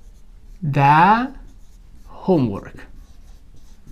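A young man speaks with animation in short bursts.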